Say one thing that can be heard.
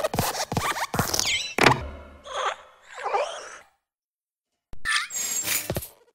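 A desk lamp's springs squeak as the lamp bends and hops.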